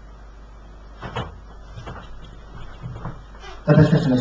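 A man speaks briefly and quietly.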